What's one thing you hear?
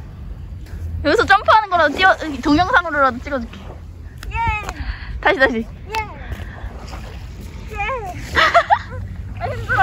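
A young woman talks and laughs excitedly close by.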